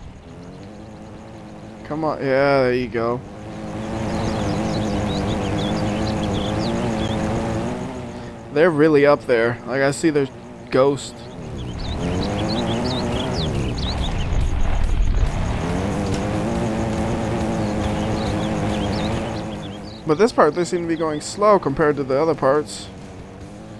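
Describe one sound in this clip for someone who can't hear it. An off-road truck's engine drones and labours.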